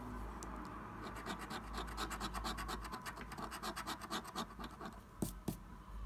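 A coin scratches rapidly and rhythmically across a scratch card.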